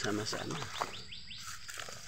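A plastic bag crinkles close by.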